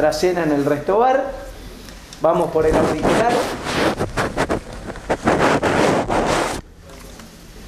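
A woman speaks loudly and with animation nearby.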